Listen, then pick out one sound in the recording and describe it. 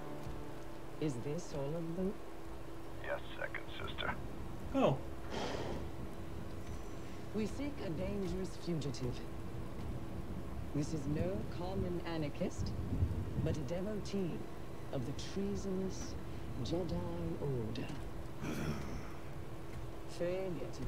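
A woman speaks coldly and slowly, her voice slightly muffled.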